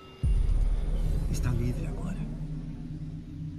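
A young man speaks calmly up close.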